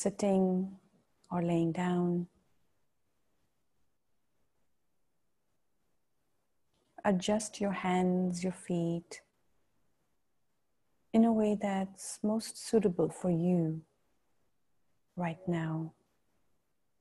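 A woman speaks calmly and slowly into a close microphone, with long pauses.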